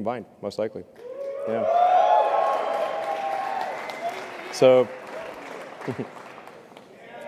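A large crowd cheers and whoops.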